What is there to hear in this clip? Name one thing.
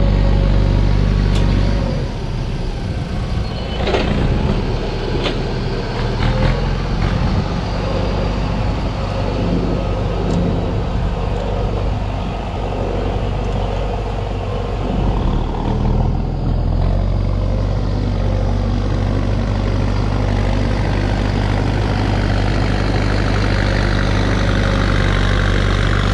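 A tractor engine rumbles steadily, fading as it drives away and growing louder as it returns.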